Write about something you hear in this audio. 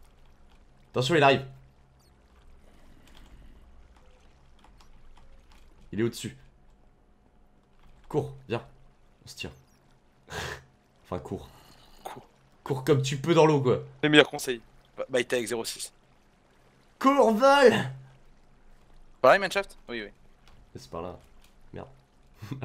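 A young man talks with animation into a close microphone, with pauses.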